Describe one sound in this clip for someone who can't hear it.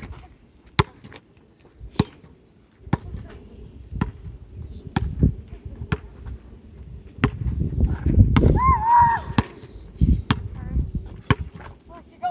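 A basketball bounces sharply on hard pavement outdoors.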